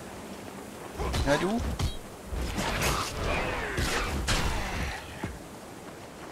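Sword blows and impacts ring out in a fight.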